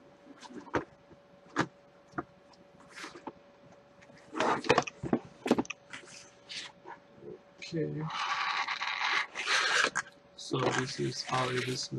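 A cardboard box scrapes and rustles as it is handled and opened.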